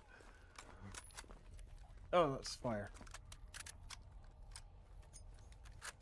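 A rifle's metal parts click as it is handled.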